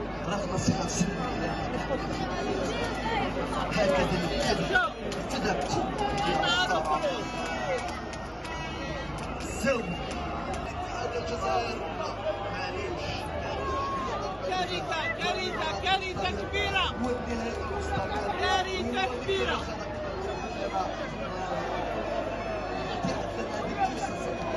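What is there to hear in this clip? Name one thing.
A large outdoor crowd murmurs and shouts continuously.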